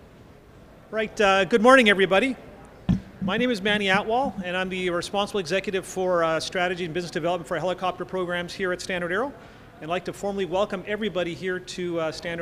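A man speaks calmly into a microphone in a large echoing hall.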